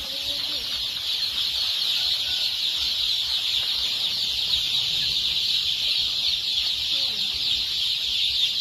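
Many chicks cheep constantly in a dense, high chorus.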